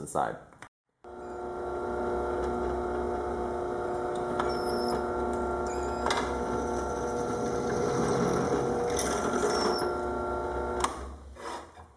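A drill press motor runs with a steady whine.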